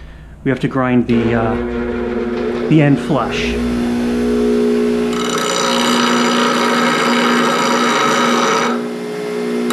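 A bench grinder motor starts and hums steadily.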